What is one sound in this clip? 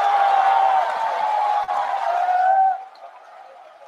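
A large crowd applauds loudly in an echoing hall.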